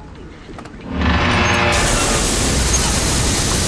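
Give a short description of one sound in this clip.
A metal valve wheel squeals as it is turned.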